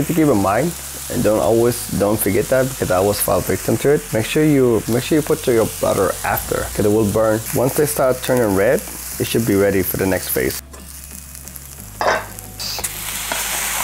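Onions sizzle in a hot pan.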